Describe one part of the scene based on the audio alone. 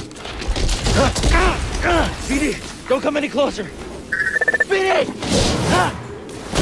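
A young man speaks with strain, close by.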